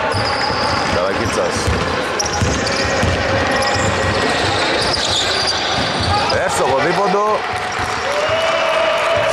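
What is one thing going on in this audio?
Sneakers squeak on a gym floor, echoing in a large hall.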